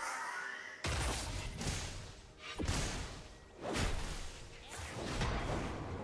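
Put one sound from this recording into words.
Magic blasts whoosh and boom in a fight.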